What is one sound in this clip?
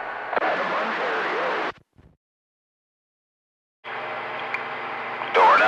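Radio static hisses loudly, cutting off briefly and then returning.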